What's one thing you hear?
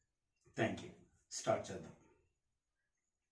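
A man speaks a few words calmly and close by.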